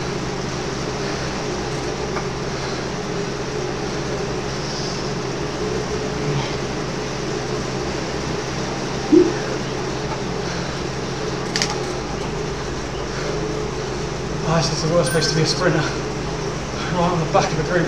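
A young man pants heavily close to a microphone.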